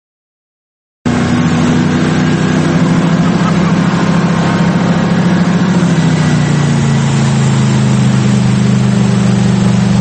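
Water rushes and splashes in a boat's wake.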